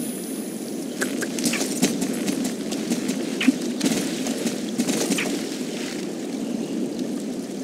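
Horse hooves clop slowly on sand.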